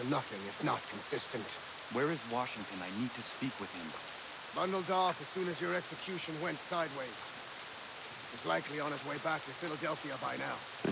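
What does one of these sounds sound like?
A man speaks calmly and gravely, close by.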